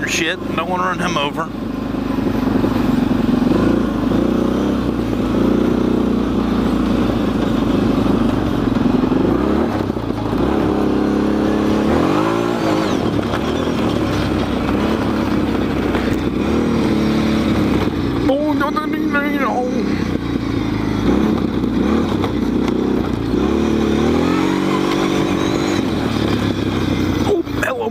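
A car engine hums steadily, rising and falling in pitch as the car drives.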